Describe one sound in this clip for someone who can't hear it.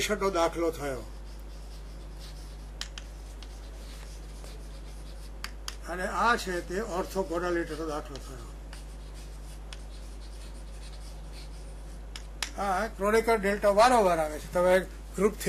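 An elderly man speaks calmly, as if lecturing, through a microphone.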